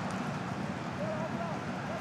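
A man shouts loudly nearby.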